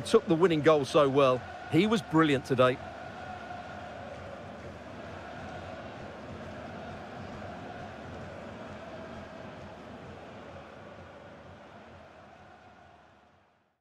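A large stadium crowd murmurs and cheers steadily, then fades away.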